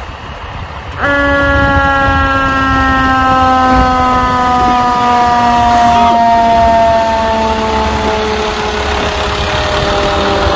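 A fire engine's air horn blares and slowly drops in pitch as it passes.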